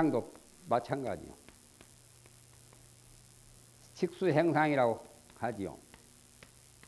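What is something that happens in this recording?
A man speaks calmly in short phrases through a microphone.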